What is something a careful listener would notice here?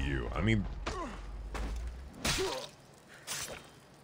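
A blade strikes a body with a heavy thud.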